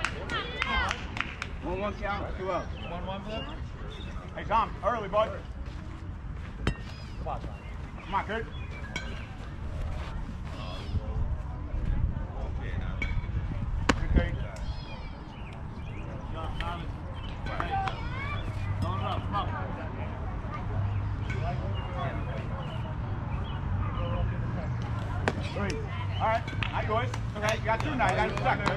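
Children and adults call out and cheer outdoors.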